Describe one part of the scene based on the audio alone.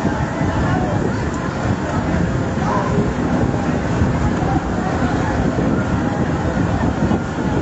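A large fire roars steadily outdoors.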